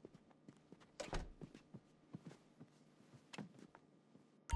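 Footsteps pad across a floor.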